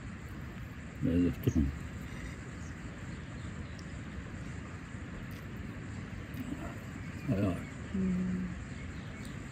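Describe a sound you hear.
A man close by hums and murmurs with pleasure while eating.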